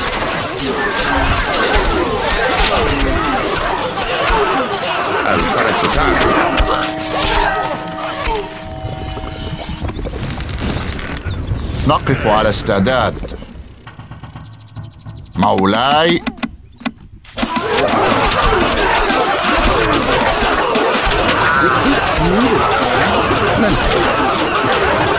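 A large crowd of soldiers clamours and clashes in battle.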